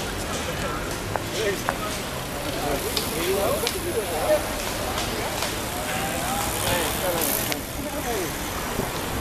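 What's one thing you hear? Men chat loosely among a passing group of cyclists.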